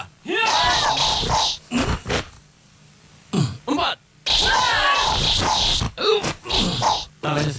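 A group of young men and women shout loudly in unison, in short repeated bursts, outdoors.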